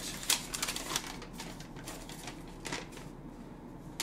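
Paper rustles as a young man handles it.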